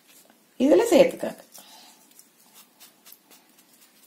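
Hands rub dry flour in a bowl.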